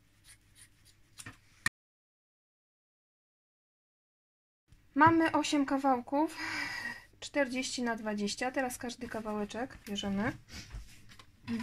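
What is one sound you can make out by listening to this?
Fabric rustles softly as hands smooth and fold it.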